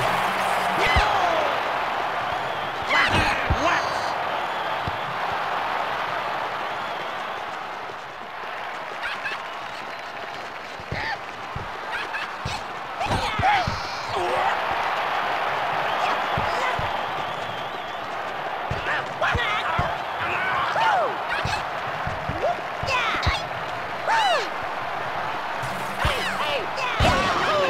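A ball is kicked with sharp thuds now and then.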